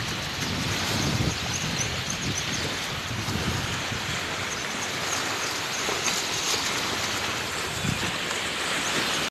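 Wind blows in strong gusts.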